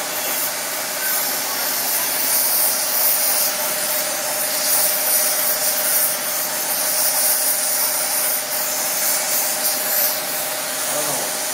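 A gas torch roars with a steady hiss.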